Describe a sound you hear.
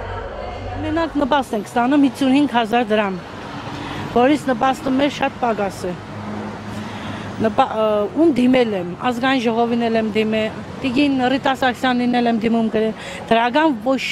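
A middle-aged woman speaks close to a microphone, earnestly and with feeling.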